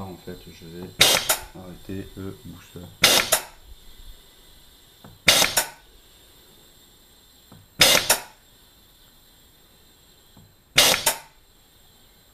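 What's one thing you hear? Compressed air hisses out in short, sharp bursts.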